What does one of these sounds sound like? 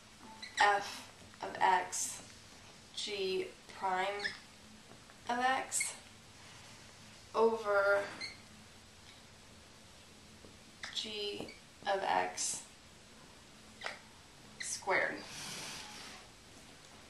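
A young woman speaks calmly, explaining, close by.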